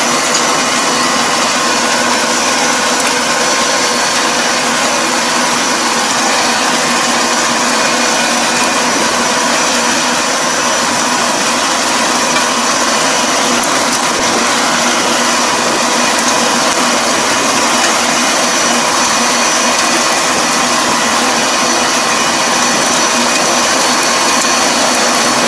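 A tractor engine runs steadily close by.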